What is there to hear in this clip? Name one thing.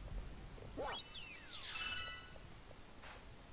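A sparkling burst sweeps down in pitch in a video game.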